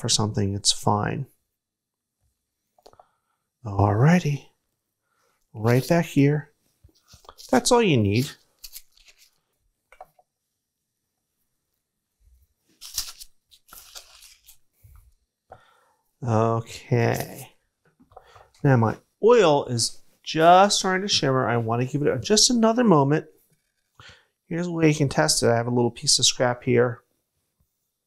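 A middle-aged man speaks calmly and clearly close by, in short phrases with pauses.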